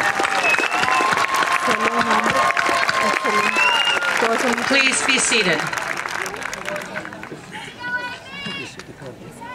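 A crowd claps and applauds.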